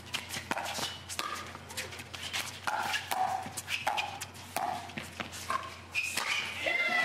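Paddles hit a plastic ball back and forth in a quick rally.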